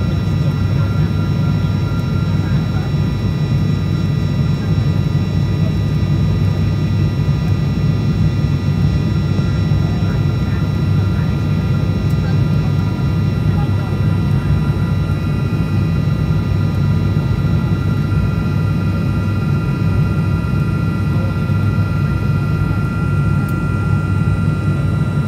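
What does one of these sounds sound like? A jet engine roars steadily inside an aircraft cabin.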